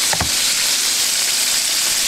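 Hot oil sizzles and crackles steadily.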